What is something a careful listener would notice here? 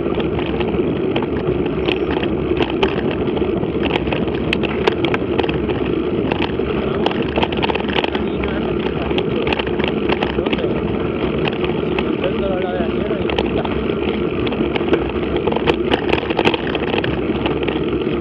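Tyres roll over a bumpy gravel track, crunching and rattling steadily.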